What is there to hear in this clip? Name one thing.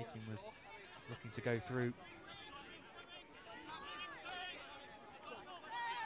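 Young players shout calls to one another on an open field outdoors.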